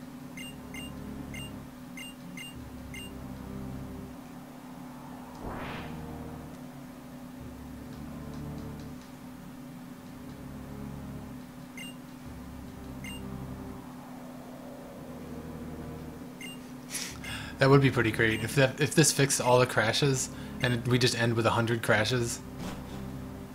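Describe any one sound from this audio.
Soft electronic game music plays steadily.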